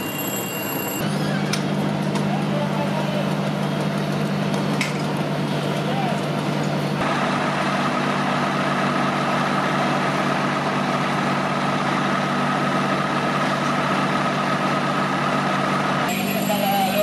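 A fire engine's motor idles with a steady low hum.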